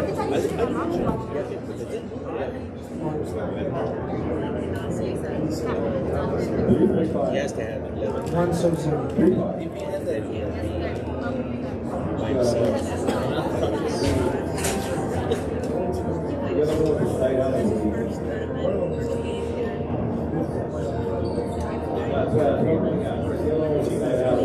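A ball smacks hard against the walls of an echoing court.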